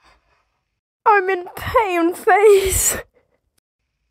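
A young girl screams loudly close to a microphone.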